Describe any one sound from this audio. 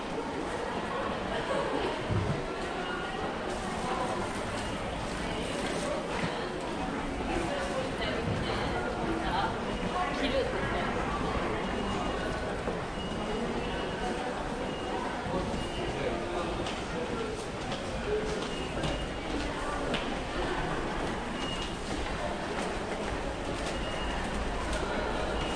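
Footsteps click and shuffle on a hard floor in a large echoing hall.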